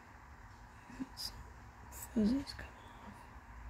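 Fingers rub and tap a small block of soft material.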